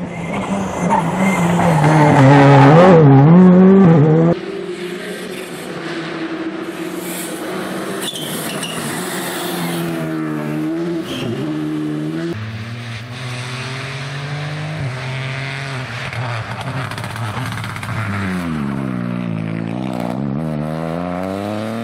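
A rally car engine revs hard at full throttle through a corner.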